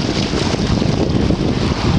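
A fish splashes at the water's surface.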